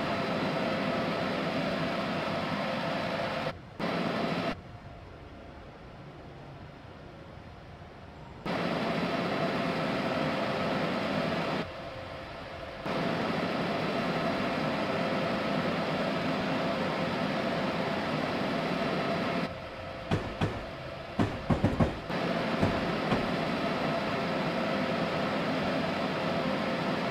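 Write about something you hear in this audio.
An electric train's motor hums steadily.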